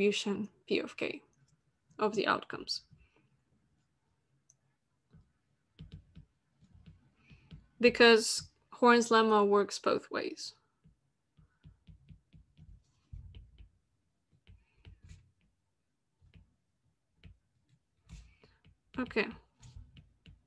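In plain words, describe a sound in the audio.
A young woman speaks calmly through an online call, explaining with pauses.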